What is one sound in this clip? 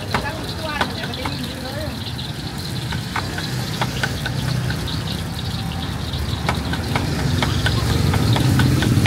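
Metal utensils clink and scrape against woks.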